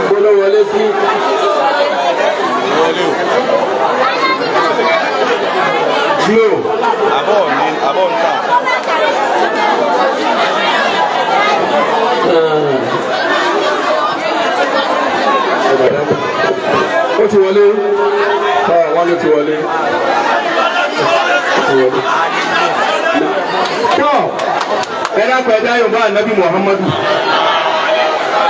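A large crowd murmurs and chatters all around.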